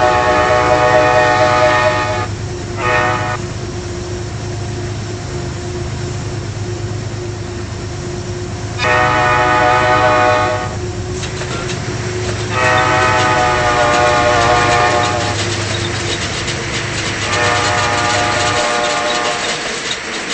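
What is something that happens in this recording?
A diesel locomotive horn sounds in long blasts.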